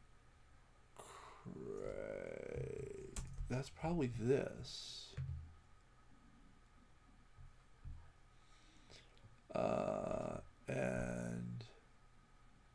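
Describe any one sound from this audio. An elderly man speaks calmly into a microphone, in short bursts.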